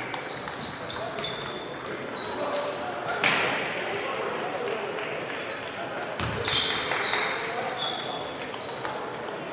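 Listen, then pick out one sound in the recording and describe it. Table tennis balls click against paddles and tables in a large echoing hall.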